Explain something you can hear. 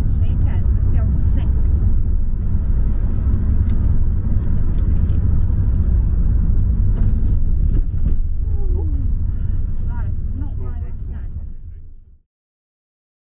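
A car engine rumbles steadily from inside the car, then cuts off.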